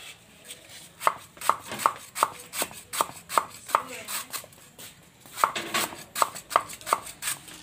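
A cleaver chops quickly on a wooden board.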